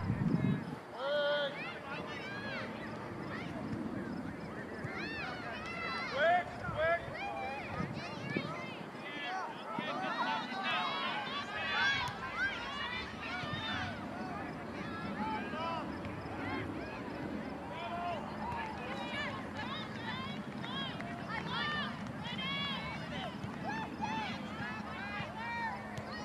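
Adult spectators chat quietly outdoors.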